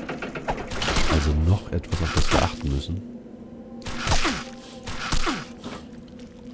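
A monstrous creature snarls and shrieks.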